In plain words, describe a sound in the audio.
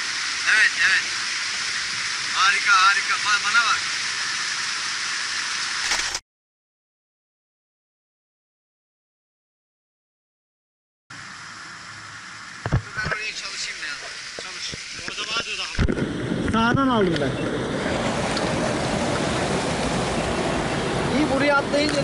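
A mountain stream rushes loudly over rocks nearby.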